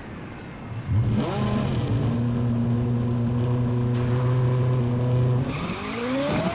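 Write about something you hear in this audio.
A race car engine idles with a steady hum.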